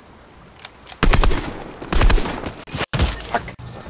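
An assault rifle fires in bursts.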